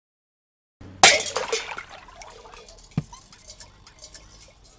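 A metal cup clatters on a hard floor.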